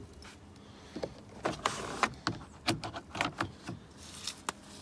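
A window blind rattles and clicks as it is pulled along.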